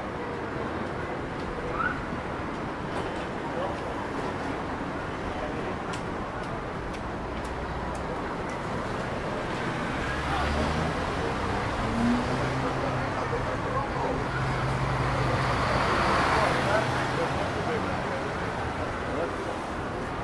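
Traffic hums steadily nearby outdoors.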